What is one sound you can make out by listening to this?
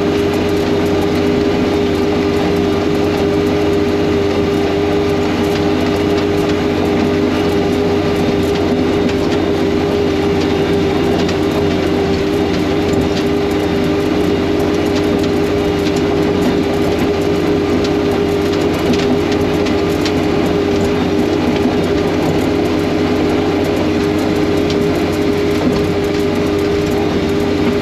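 A vehicle engine drones steadily and loudly from close by.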